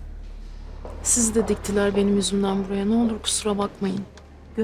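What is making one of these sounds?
A young woman speaks with feeling, close by.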